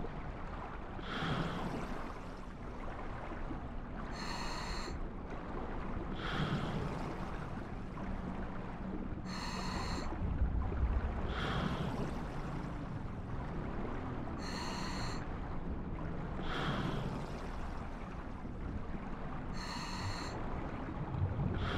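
Water murmurs in a low, steady underwater hum.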